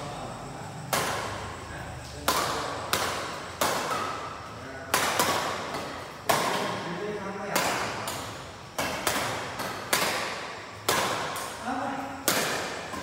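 Badminton rackets smack a shuttlecock back and forth in a large echoing hall.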